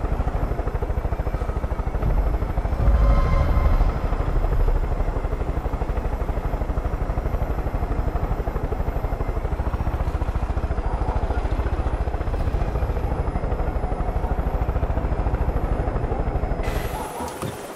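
A helicopter's rotor thumps loudly and steadily close by.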